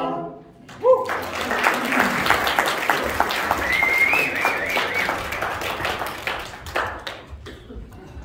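An audience applauds and cheers in a room.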